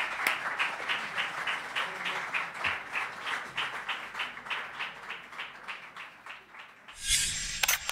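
People clap along in a quick, steady rhythm.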